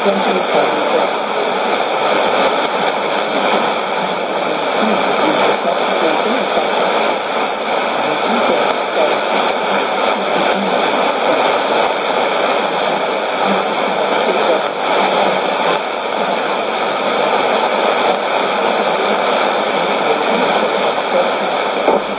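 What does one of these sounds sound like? A shortwave radio plays a faint, crackly broadcast through a steady hiss of static.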